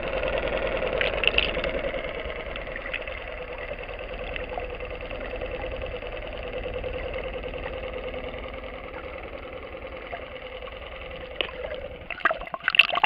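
A steady muffled rumble fills the recording underwater.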